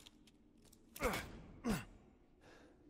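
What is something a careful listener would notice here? Footsteps fall on a hard floor indoors.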